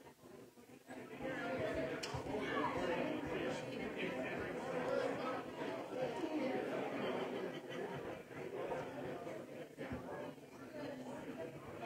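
People in a crowd chat and murmur around the room.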